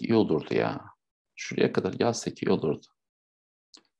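A man speaks calmly through a microphone, as on an online call.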